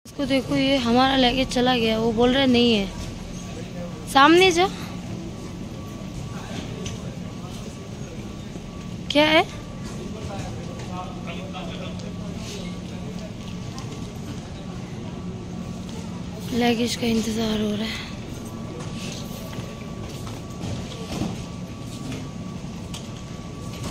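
A baggage conveyor belt rumbles steadily in a large echoing hall.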